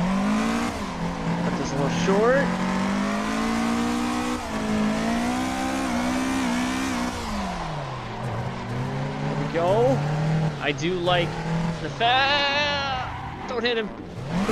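Tyres squeal as a car slides through corners.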